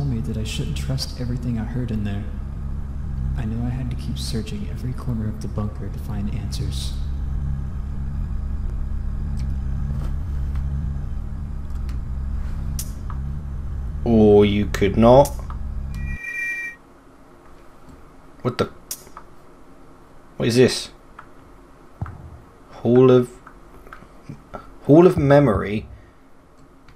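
A man speaks calmly and close to a microphone, now and then.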